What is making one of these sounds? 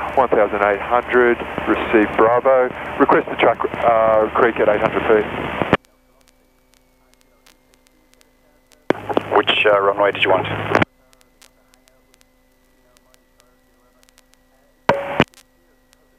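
A young man speaks calmly through a headset intercom.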